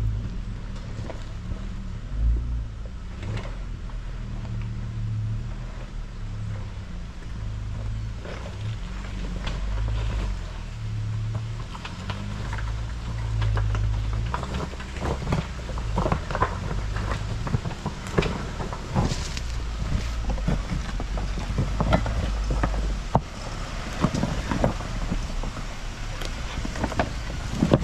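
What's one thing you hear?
Tyres crunch and knock over rocks, growing louder as the vehicle comes close.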